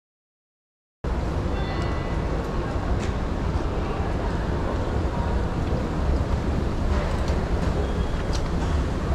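An escalator rumbles and hums steadily.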